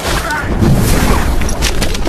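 A man fires a submachine gun in rapid bursts.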